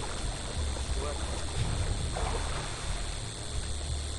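Water splashes as someone swims.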